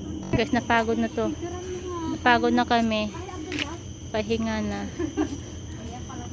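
A young woman talks with animation, close by.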